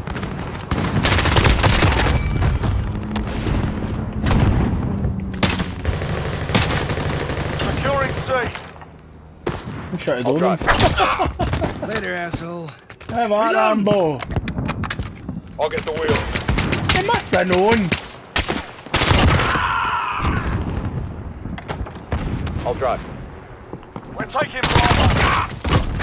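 Rapid gunfire bursts out in loud, sharp cracks.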